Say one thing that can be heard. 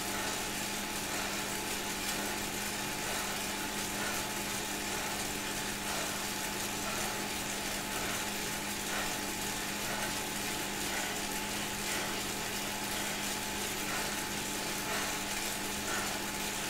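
A man breathes heavily.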